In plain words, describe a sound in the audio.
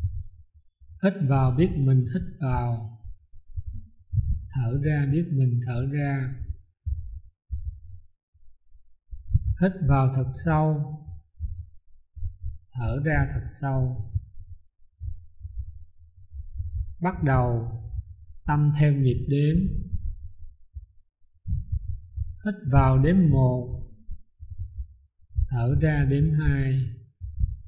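A man chants slowly in short phrases through a microphone, with pauses between them.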